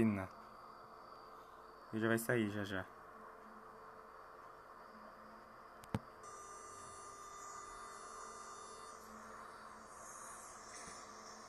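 A subway train idles at a platform with a steady low hum.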